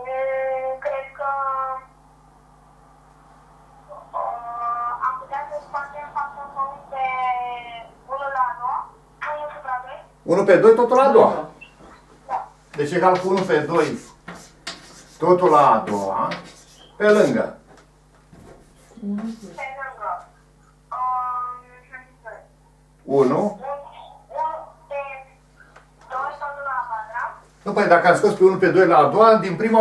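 An elderly man speaks calmly, as if lecturing.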